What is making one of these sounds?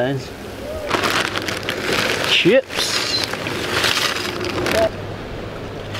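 Tortilla chips rattle and crunch as they pour onto a glass plate.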